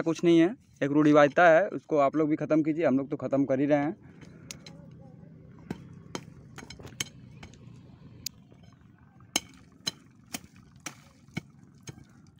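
A wooden stick scrapes and knocks into dry soil.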